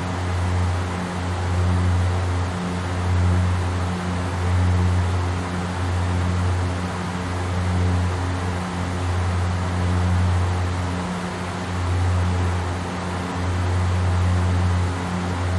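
Propeller engines drone steadily with a low, gently pulsing hum.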